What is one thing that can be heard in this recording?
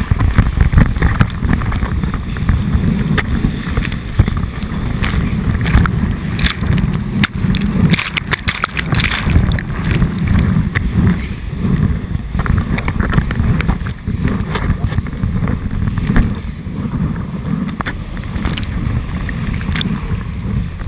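Wind buffets a microphone in loud, low rumbling gusts.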